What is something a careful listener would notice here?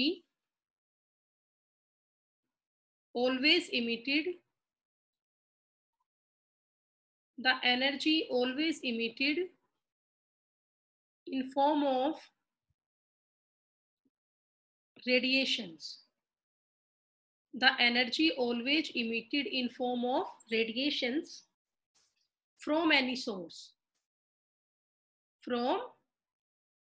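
A woman speaks calmly and slowly into a close microphone, pausing between phrases.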